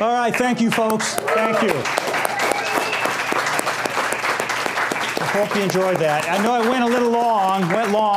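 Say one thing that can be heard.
A man claps his hands.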